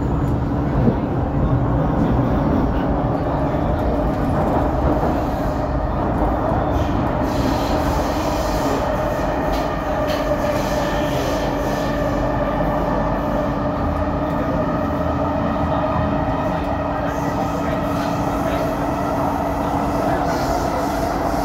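A subway train rumbles and hums steadily along the tracks.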